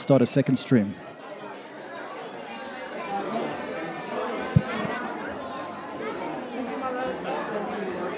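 Several people murmur and chatter in the background.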